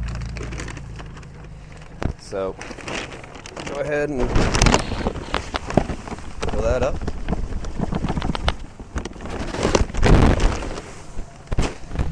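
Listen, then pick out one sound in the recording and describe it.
A paper bag crinkles and rustles as it is handled.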